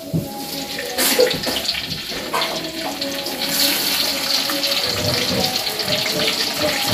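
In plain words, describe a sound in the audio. Food sizzles loudly in hot oil.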